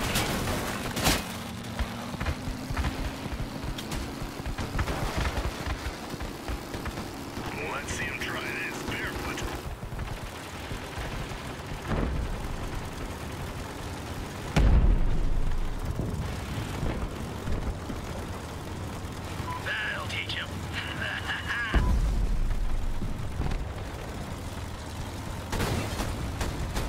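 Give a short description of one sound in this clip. Gunfire and explosions bang in bursts.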